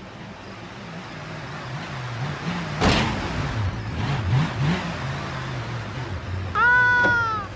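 A car engine revs up and down as the car climbs a ramp.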